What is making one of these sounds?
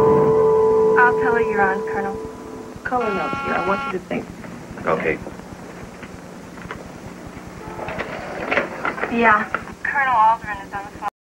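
A woman talks on a phone.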